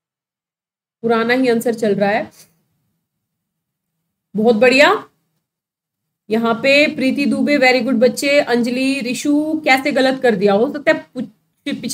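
A woman speaks clearly into a close microphone, explaining in bursts with pauses.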